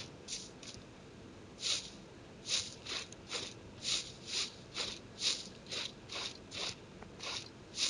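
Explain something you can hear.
Footsteps crunch through snow at a steady running pace.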